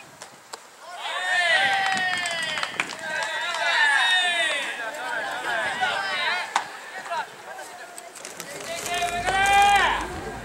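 A crowd cheers and chants from the stands.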